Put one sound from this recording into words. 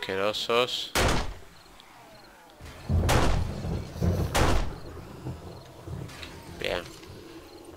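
A gun fires loud shots that echo.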